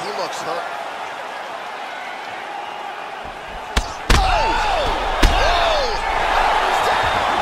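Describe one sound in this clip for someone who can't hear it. A crowd roars and cheers in a large arena.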